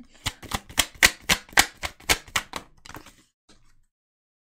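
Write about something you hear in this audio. Playing cards riffle and flick quickly in a shuffle.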